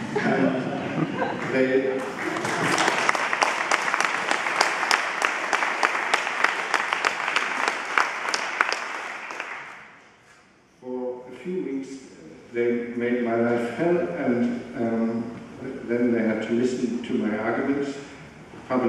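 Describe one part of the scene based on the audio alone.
An older man speaks calmly into a microphone in a large hall.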